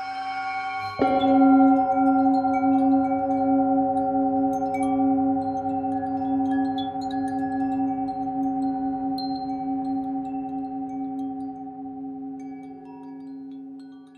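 A singing bowl is struck and rings out with a long, slowly fading tone.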